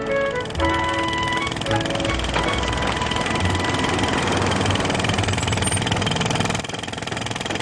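A jackhammer pounds loudly and steadily.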